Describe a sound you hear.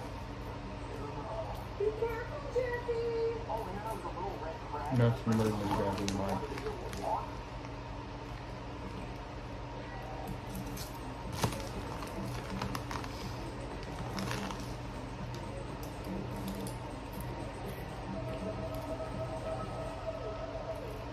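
A teenage boy crunches on chips.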